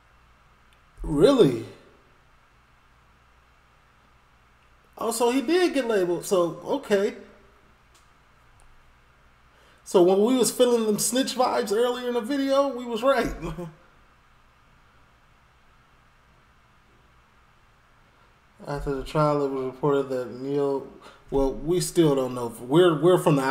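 A man speaks with animation close to a microphone, in bursts with pauses.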